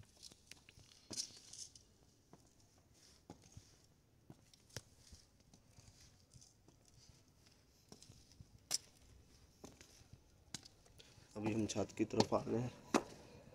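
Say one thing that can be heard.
Footsteps tap on hard concrete steps.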